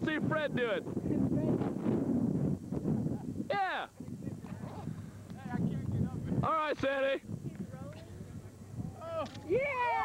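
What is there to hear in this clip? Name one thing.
Young men whoop and shout outdoors.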